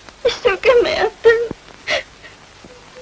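A teenage girl speaks.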